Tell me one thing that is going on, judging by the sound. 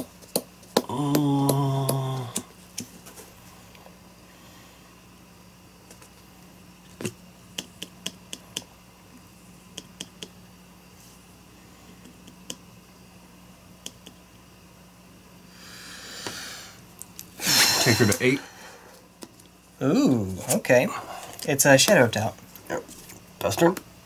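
Playing cards tap and slide softly on a play mat.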